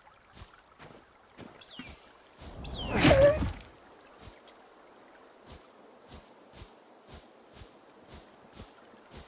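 Footsteps crunch on dry ground at a steady walking pace.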